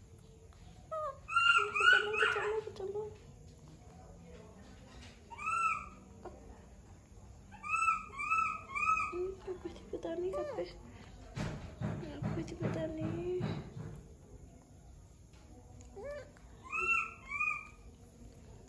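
A baby monkey squeaks in high, shrill chirps.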